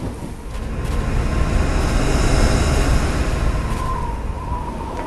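A large airship rumbles and hums overhead.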